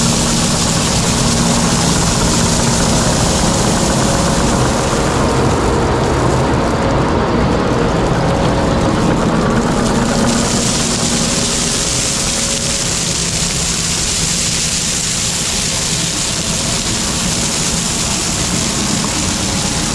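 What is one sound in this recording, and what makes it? Gravel pours and rattles out of a bucket.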